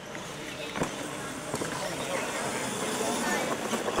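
Toy car tyres crunch and skid on gravel.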